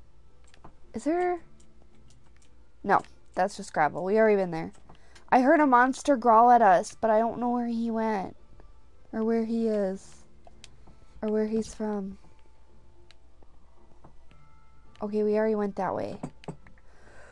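A young woman talks casually into a microphone, close by.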